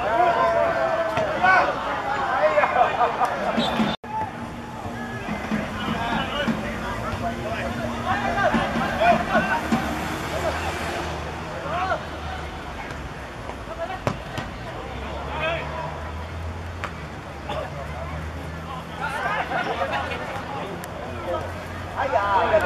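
Young men shout and call out across an outdoor football pitch.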